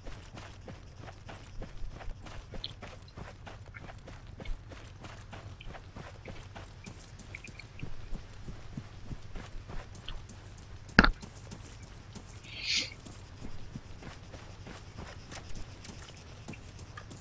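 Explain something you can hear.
Footsteps run quickly over grass and dry ground.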